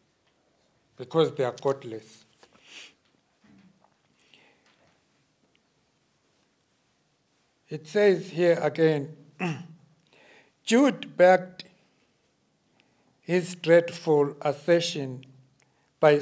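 An elderly man reads out slowly and calmly through a microphone, with long pauses.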